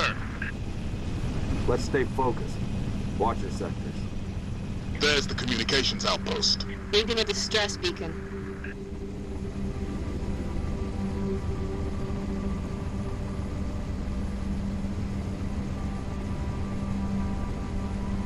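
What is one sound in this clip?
A dropship's engines hum steadily.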